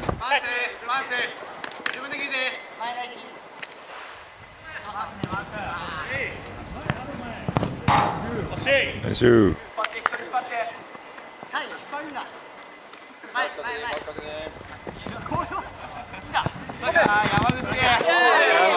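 A ball thuds against shoes as players kick it.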